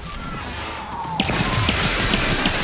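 A gun fires with a loud blast.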